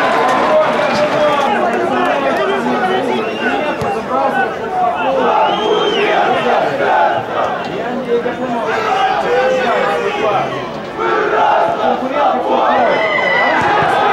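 Men shout and call to each other across an outdoor football pitch.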